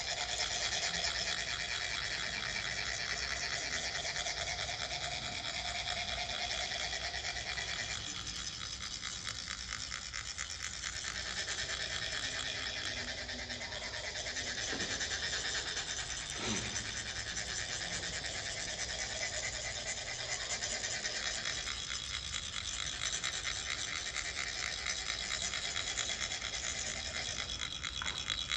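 A metal sand funnel rasps in a fast, steady scraping rhythm.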